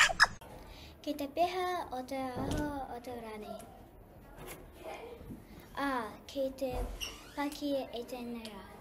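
A young girl speaks clearly and calmly into a microphone.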